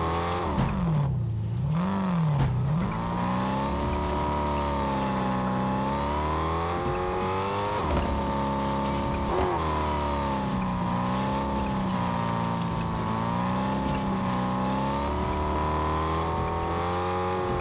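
A car engine revs up and then hums steadily at speed, rising and falling in pitch.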